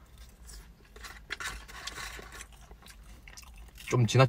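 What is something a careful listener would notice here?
A young man chews food.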